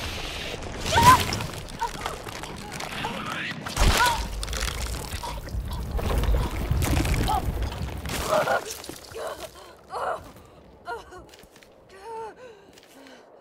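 A young woman gasps and chokes in distress.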